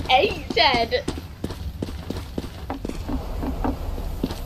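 Footsteps tap steadily on stone stairs.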